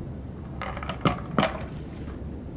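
A panda's frozen treat knocks against rock.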